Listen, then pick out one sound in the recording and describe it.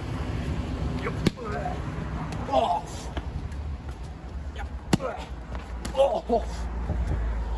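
A man shouts in short bursts nearby.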